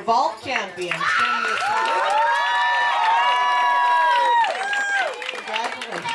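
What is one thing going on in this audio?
Young girls cheer and squeal loudly.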